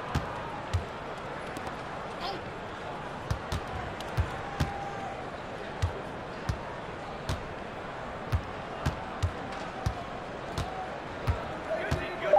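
A basketball bounces steadily on a hardwood court.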